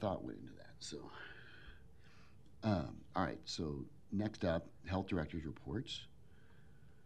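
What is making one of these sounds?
A man speaks into a microphone in a calm, chatty way.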